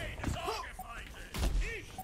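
Shots and blasts from a video game crack sharply.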